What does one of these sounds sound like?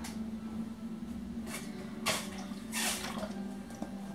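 A plastic bottle rattles in a woman's hands.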